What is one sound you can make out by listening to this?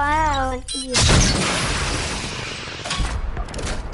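A rocket explodes with a loud roaring boom.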